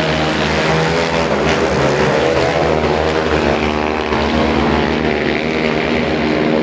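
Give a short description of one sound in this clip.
Motorcycle engines roar loudly as several bikes race around a track, revving up and down.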